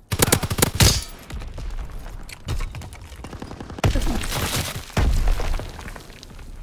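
Gunshots crack in loud, rapid bursts.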